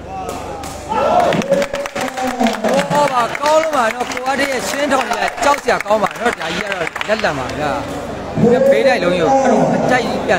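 A crowd chants loudly in rising and falling voices.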